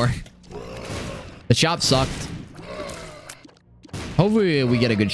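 Video game effects pop and splatter.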